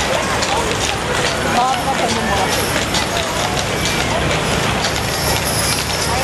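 A crowd of spectators chatters along a street outdoors.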